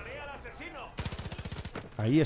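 A rifle fires a rapid burst of shots.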